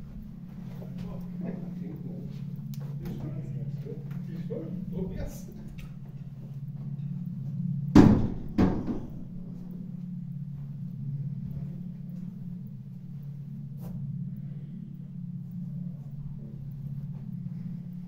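Footsteps shuffle slowly across a floor.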